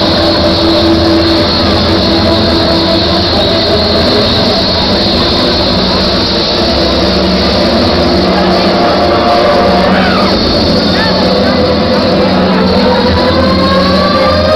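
Loud live music plays through a large sound system.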